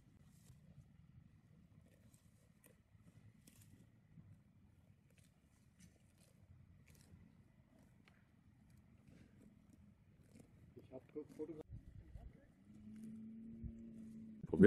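A cow tears and chews grass close by.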